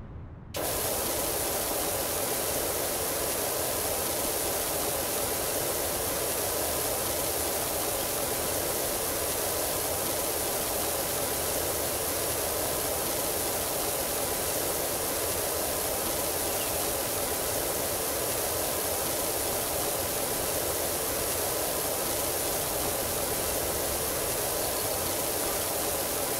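A pressure washer sprays water in a steady, loud hiss.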